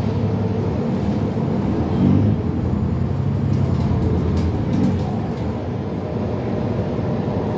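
A bus engine revs as the bus pulls away.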